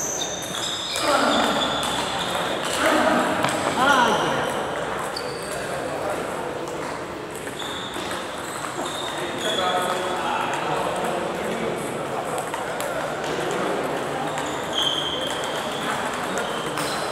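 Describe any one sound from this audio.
Men talk in the background in a large echoing hall.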